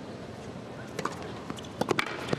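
A racket strikes a tennis ball with sharp pops in a large hall.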